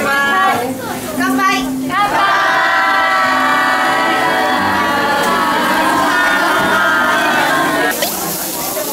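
Young women cheer and laugh together in a toast.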